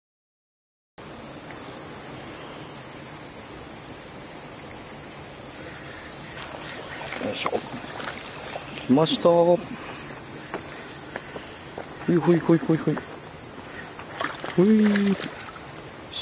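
Shallow stream water trickles and rushes steadily nearby.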